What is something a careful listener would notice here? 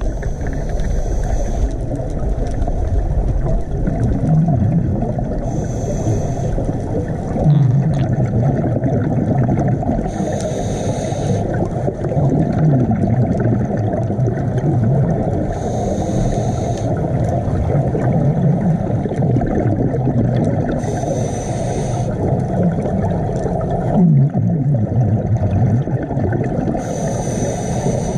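A diver breathes through a regulator, with loud bursts of bubbles every few seconds.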